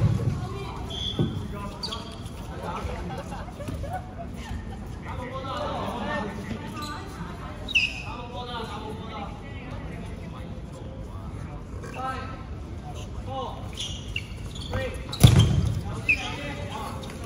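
Sneakers squeak on the hard floor.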